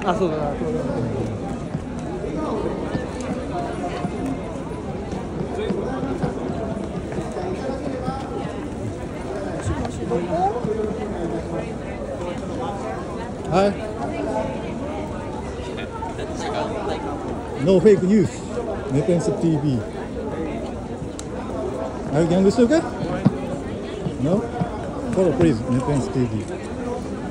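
A crowd chatters and murmurs all around outdoors.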